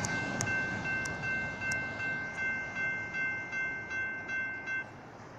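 Freight car wheels clack rhythmically over rail joints.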